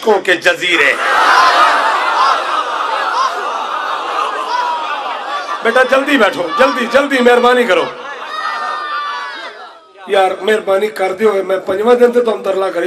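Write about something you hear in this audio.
A man speaks loudly and with passion through a microphone, heard over loudspeakers.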